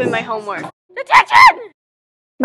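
A woman shouts angrily.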